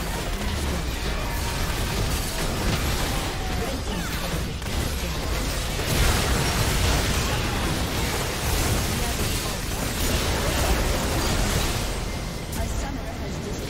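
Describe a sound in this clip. Video game spell effects crackle and boom during a battle.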